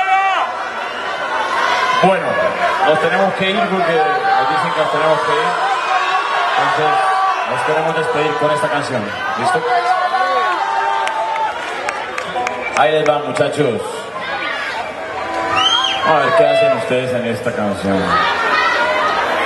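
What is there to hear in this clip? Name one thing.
A man sings loudly through a microphone in a large echoing space.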